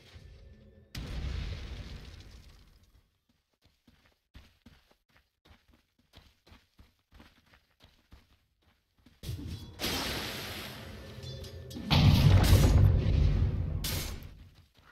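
Fiery spell blasts whoosh and roar in bursts.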